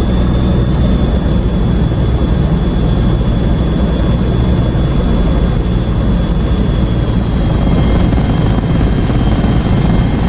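A helicopter's engine whines steadily.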